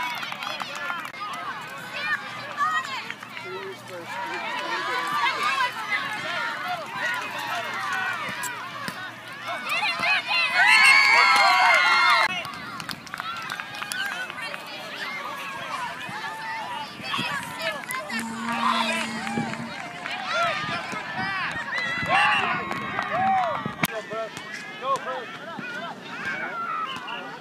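Young children shout and squeal during play outdoors.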